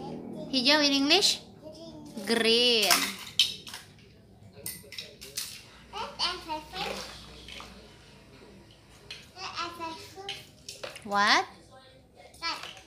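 A young girl talks and squeals playfully close by.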